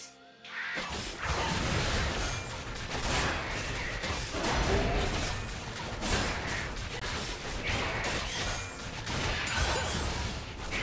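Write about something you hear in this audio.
Magic spells whoosh and crackle in a fast, busy fight.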